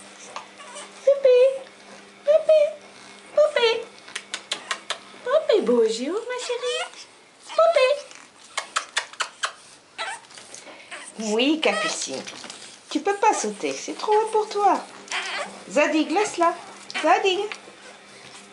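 Puppies whine and yelp in high, wavering cries.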